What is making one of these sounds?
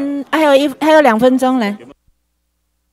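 A woman speaks loudly through a microphone.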